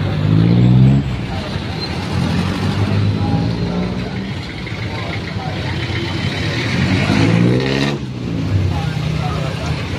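A small motorcycle engine runs.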